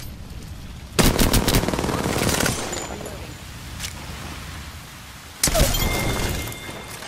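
A gun fires rapid bursts of shots.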